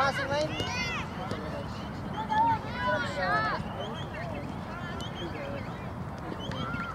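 Young girls shout and call out across an open outdoor field.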